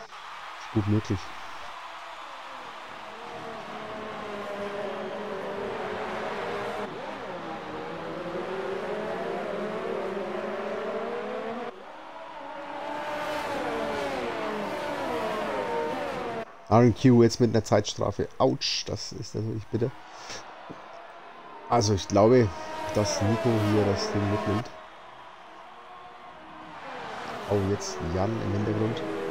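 Racing car engines whine and rise and fall in pitch as the cars race past.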